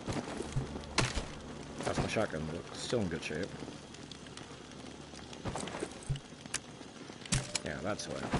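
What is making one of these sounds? A shotgun clacks and clicks as it is handled.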